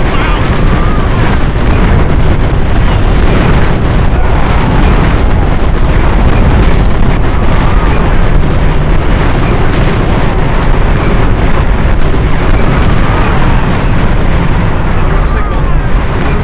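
Artillery shells explode with dull booms.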